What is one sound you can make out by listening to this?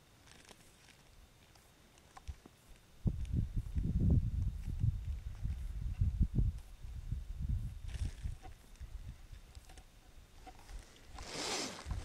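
Buttons on a small electronic device click.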